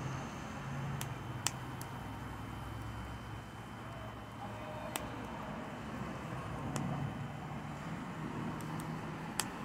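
Wood crackles and pops now and then in a fire.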